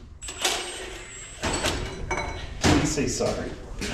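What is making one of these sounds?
Metal tools clank and knock.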